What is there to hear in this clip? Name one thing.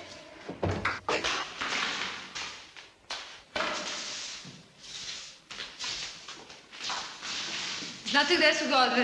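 A broom sweeps across a hard floor.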